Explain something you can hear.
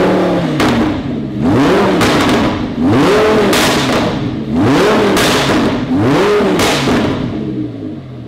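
A sports car engine revs hard again and again, roaring loudly through the exhaust.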